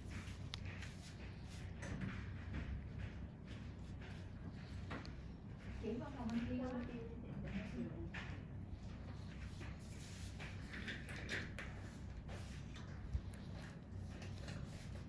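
Latex-gloved fingers rub and rustle against cotton pads on skin.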